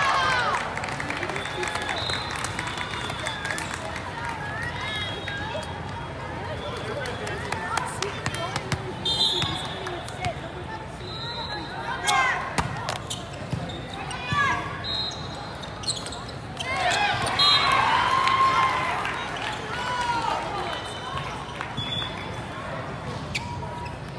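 Crowd chatter fills a large echoing hall.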